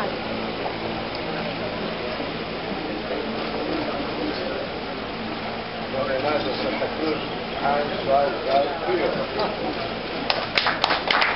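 Several men chat and murmur close by.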